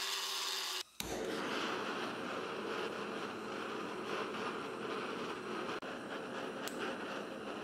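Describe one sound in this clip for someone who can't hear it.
A gas torch roars steadily.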